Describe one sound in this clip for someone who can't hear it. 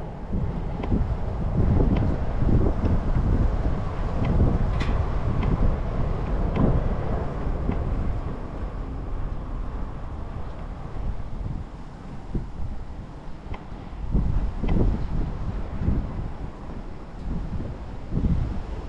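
Bicycle tyres roll over smooth pavement.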